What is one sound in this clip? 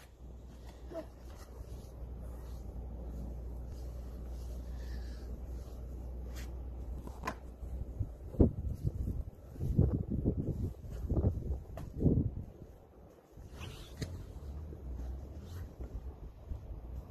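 A small child's footsteps crunch through snow.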